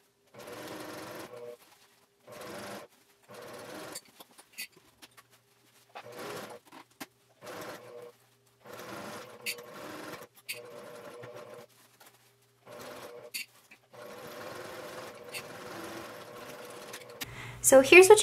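A sewing machine whirs in short bursts of stitching.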